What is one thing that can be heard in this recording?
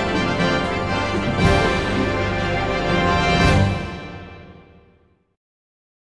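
Loud orchestral game music plays with two heavy crashes, then fades out.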